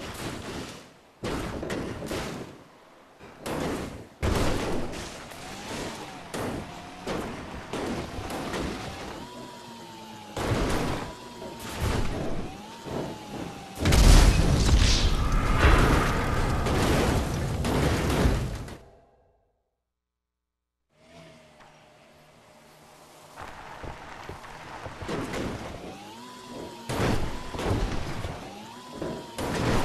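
A small cart engine whines and revs as it climbs over rough ground.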